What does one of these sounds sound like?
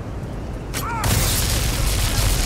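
A magic spell crackles and bursts loudly.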